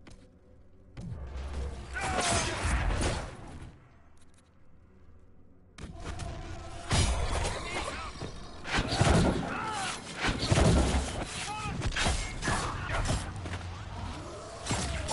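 Magic blasts whoosh and boom.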